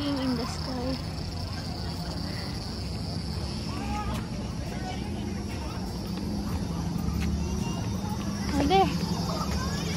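A young child calls out nearby with high, sharp cries.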